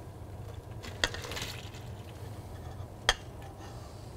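A metal bowl clanks against another bowl.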